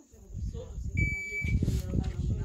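A shot timer beeps once.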